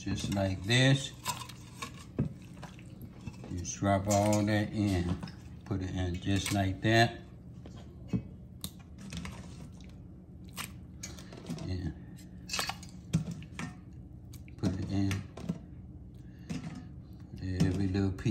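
Raw meat plops wetly into liquid.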